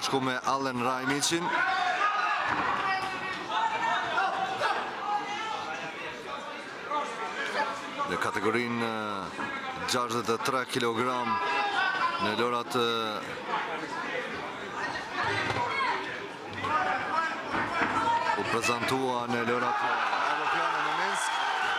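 A crowd of men shouts and cheers loudly in an echoing hall.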